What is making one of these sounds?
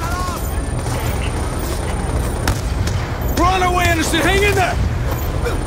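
A rifle fires single shots.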